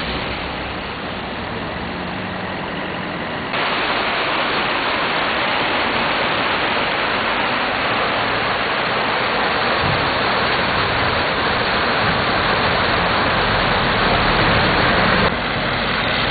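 A swollen river rushes loudly under a bridge.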